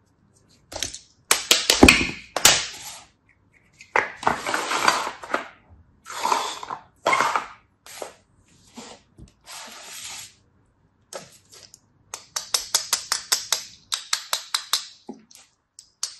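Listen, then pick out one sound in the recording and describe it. A knife slices through packed sand with a crisp crunch.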